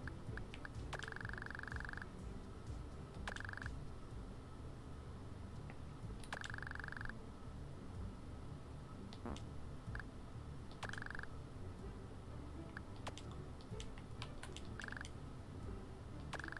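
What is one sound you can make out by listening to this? Short electronic beeping tones chatter in bursts.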